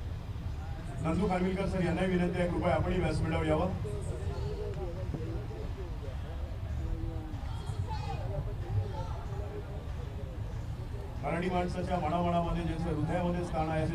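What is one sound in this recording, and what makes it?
A man speaks with animation into a microphone over loudspeakers, echoing in a large hall.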